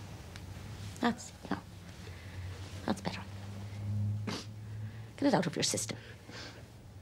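A man sobs and sniffles into a handkerchief close by.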